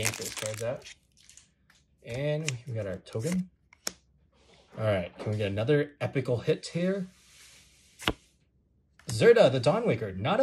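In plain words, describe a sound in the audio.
Stiff cards flick and slide against each other.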